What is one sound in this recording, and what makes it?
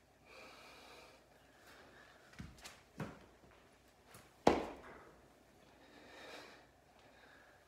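A man breathes heavily.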